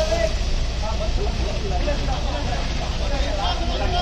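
Water hisses from a fire hose.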